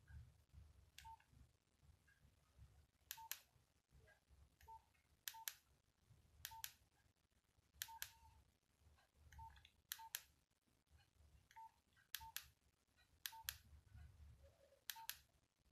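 Phone keypad buttons click sharply, again and again.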